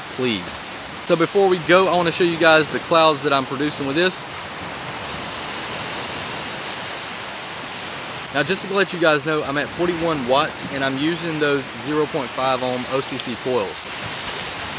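A young man talks to the microphone with animation, close up.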